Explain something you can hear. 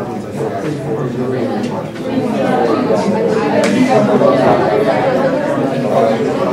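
A man lectures in a raised voice to the room.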